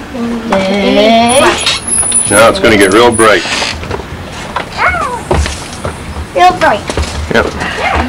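Young girls talk and call out excitedly nearby.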